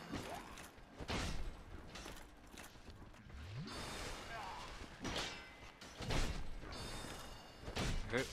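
Heavy blows land with loud, ringing clangs.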